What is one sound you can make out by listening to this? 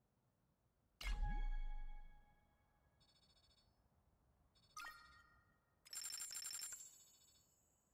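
A game menu chimes.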